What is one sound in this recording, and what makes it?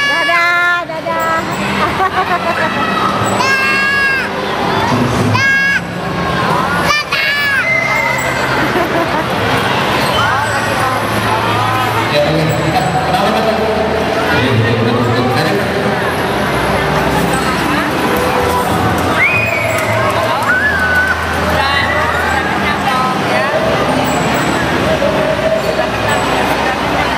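A large crowd chatters and calls out loudly in an echoing hall.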